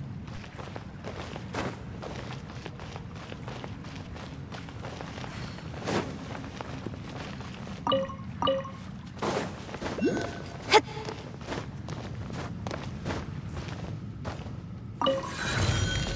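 Footsteps patter quickly over rock and wooden boards.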